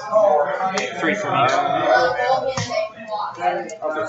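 Cards are slapped down onto a cloth mat.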